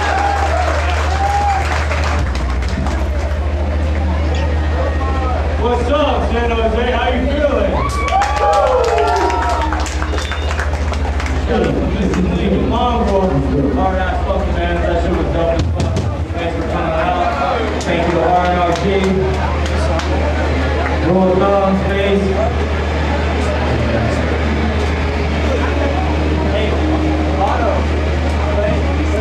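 A band plays loud, distorted music.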